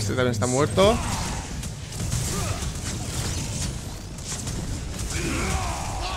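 Game spells crackle and blast in bursts.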